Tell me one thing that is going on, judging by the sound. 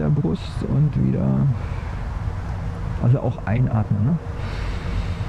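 A man speaks calmly from a short distance outdoors.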